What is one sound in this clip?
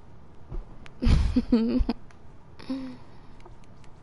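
A young woman laughs and talks briefly into a close microphone.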